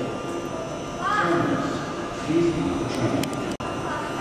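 A door chime sounds.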